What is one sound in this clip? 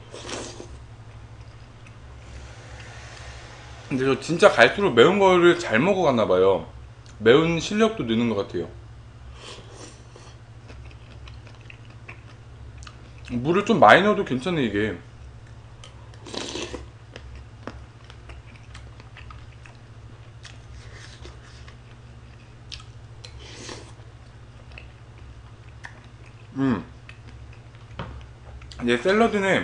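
A young man chews and slurps food.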